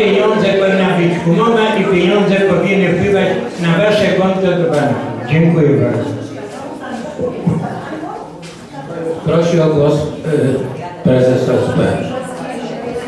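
A man speaks loudly through a microphone in a large room.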